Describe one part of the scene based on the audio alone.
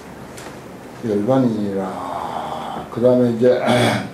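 An elderly man speaks calmly into a microphone.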